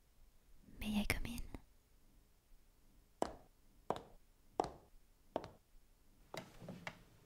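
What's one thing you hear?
A young woman speaks softly and close.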